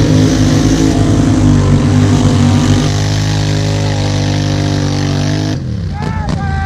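An ATV engine roars and revs steadily.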